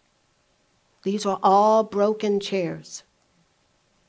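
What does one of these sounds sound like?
A woman speaks briefly through a microphone in a large hall.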